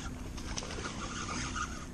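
Something splashes in water in a pond.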